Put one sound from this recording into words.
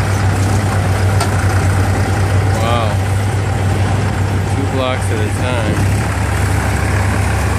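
A forklift engine rumbles steadily close by.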